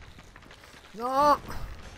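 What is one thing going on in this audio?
A large creature lets out a loud, rising shriek.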